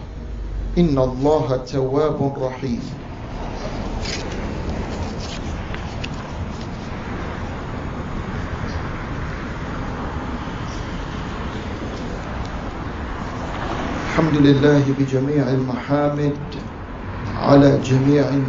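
A man speaks slowly and calmly into a microphone, heard through loudspeakers, with long pauses.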